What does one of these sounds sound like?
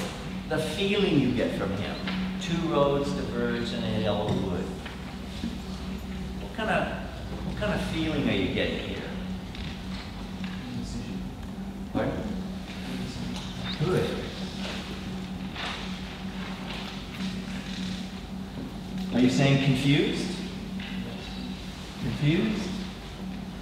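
A man speaks calmly to a group in a large, echoing room.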